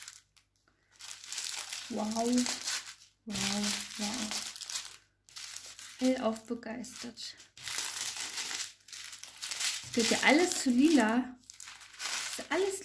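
Plastic bags crinkle and rustle as they are handled.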